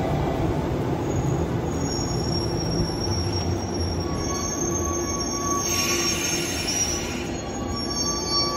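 Train brakes squeal faintly as the train comes to a stop.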